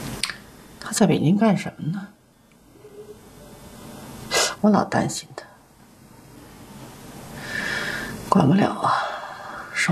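A middle-aged woman answers in a low, worried voice, close by.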